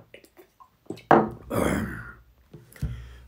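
A man takes a loud sip from a cup.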